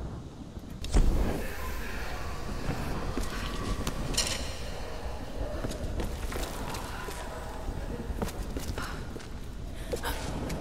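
Footsteps scuff over rock and gravel.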